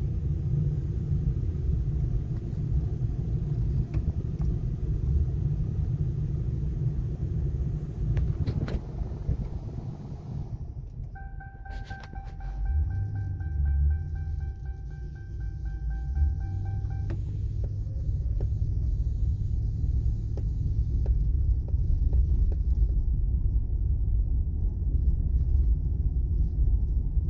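A V8 engine of a police sedan runs, heard from inside the car.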